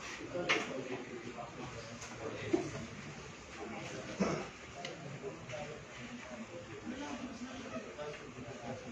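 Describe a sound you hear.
A small group of men chat nearby.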